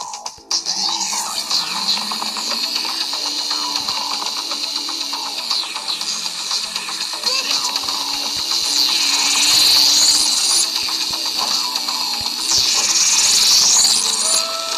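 A motorbike engine revs and whines in a game.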